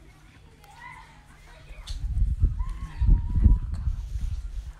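A woman speaks quietly at a distance.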